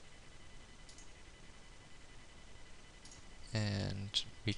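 A computer mouse clicks softly a few times.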